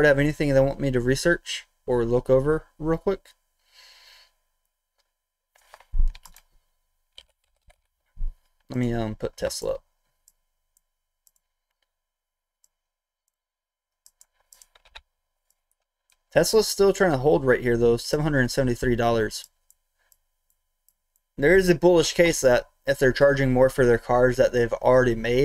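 A man speaks calmly and close into a microphone, in bursts with pauses.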